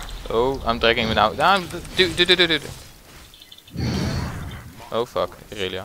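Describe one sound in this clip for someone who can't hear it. Magic spells burst and crackle in a fight.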